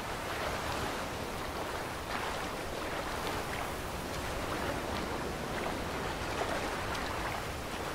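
Water splashes as a swimmer strokes through rough sea.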